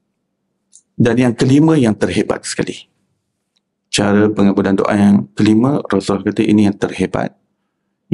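A man speaks calmly and steadily into a microphone, in pauses.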